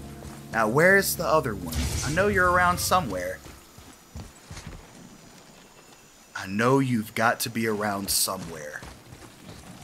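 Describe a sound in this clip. A man speaks with animation, close to a headset microphone.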